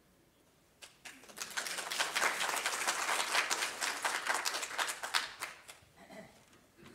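Hands clap in applause.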